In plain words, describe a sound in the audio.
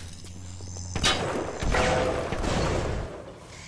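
A gun fires and a blast bursts with a crackle.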